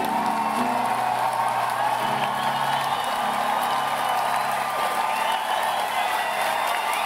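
A piano plays in a large hall.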